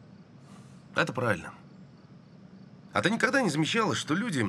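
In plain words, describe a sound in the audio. A man speaks calmly and firmly nearby.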